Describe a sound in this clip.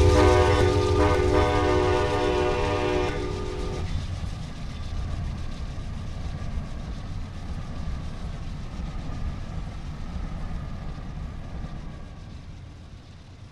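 A passenger train rumbles past on the tracks and slowly fades away.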